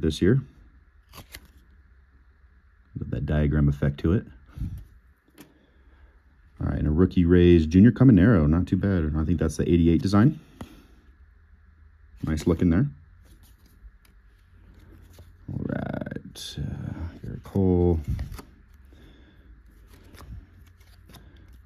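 Trading cards slide and rustle softly against each other as they are shuffled by hand.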